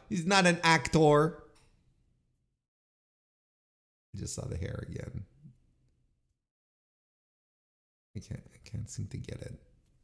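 A middle-aged man talks into a close microphone with animation, in short bursts with pauses.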